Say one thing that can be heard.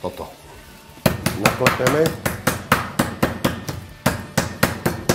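A meat mallet pounds meat on a wooden board in quick, regular blows.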